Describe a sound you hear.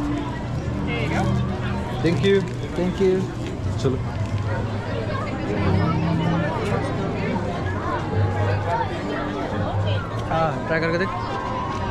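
A crowd chatters in the background outdoors.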